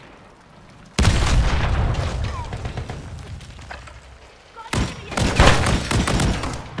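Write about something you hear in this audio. A rifle fires in rapid bursts, with loud bangs.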